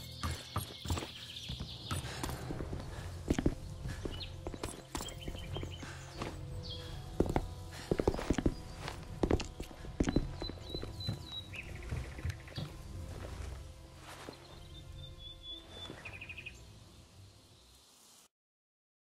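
Footsteps thud and scrape on wooden boards and rubble.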